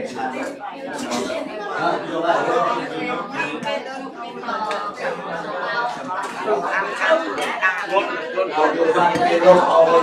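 Dishes and spoons clink as food is served.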